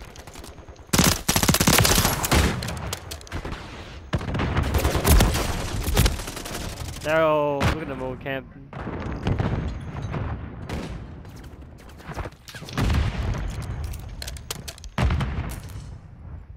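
A shotgun fires loud blasts again and again.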